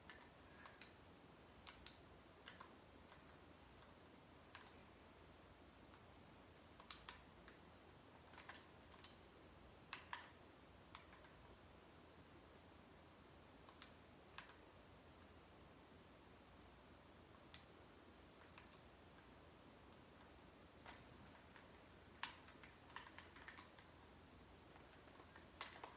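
Sharp clicks and thuds from a video game play faintly through a television speaker.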